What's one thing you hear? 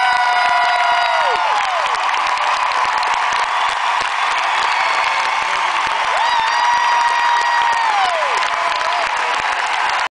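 An electric guitar plays long, held notes that bend and slide down, loud through loudspeakers in a large echoing hall.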